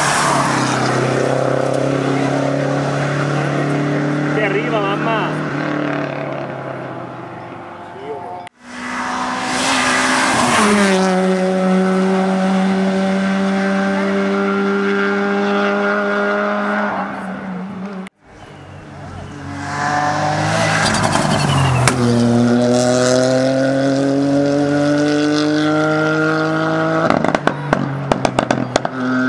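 A rally car engine revs hard, climbing and dropping in pitch as it shifts gears and speeds away.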